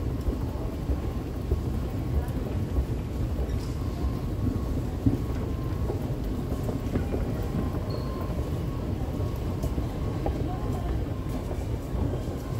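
An escalator hums and rumbles steadily in a large echoing hall.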